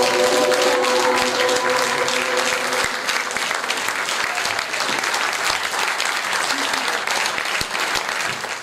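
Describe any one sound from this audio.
A large audience claps loudly in an echoing hall.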